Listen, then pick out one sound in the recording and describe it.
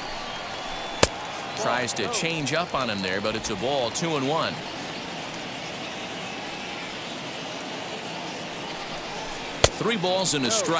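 A pitched baseball smacks sharply into a catcher's mitt.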